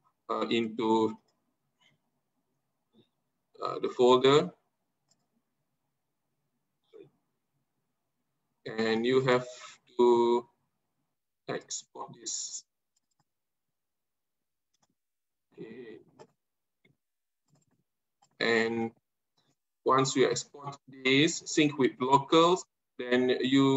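A man speaks calmly in short bursts over an online call.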